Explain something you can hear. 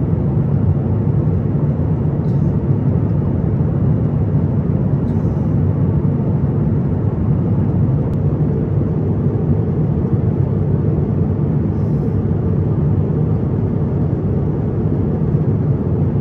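Jet engines roar steadily in a low, constant rumble.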